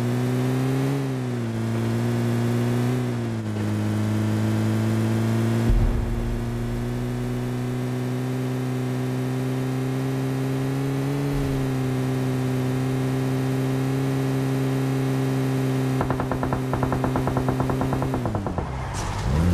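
A vehicle engine drones steadily, its pitch shifting slightly as it drives.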